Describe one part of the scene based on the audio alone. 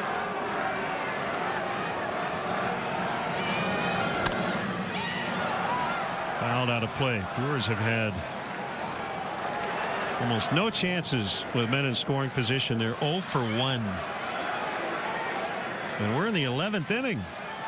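A crowd murmurs in a large open ballpark.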